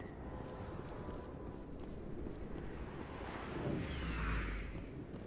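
Heavy footsteps thud quickly on a hard floor.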